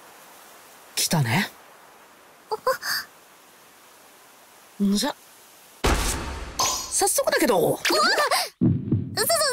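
A boy speaks playfully, close up.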